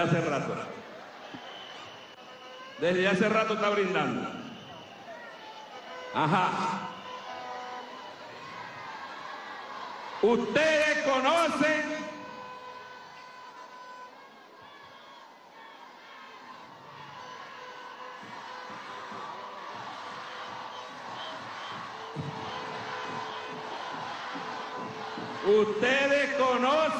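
A man speaks loudly and with emphasis into a microphone over loudspeakers, echoing outdoors.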